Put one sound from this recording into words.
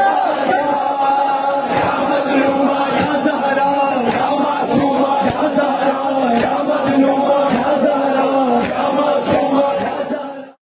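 A man chants loudly and passionately into a microphone.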